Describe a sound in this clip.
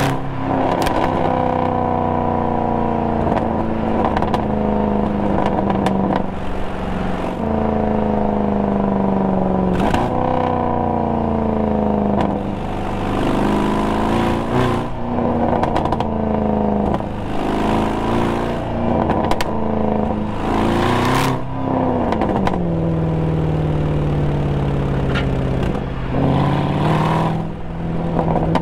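A car engine drones loudly, its pitch rising through each gear and dropping at each gear change.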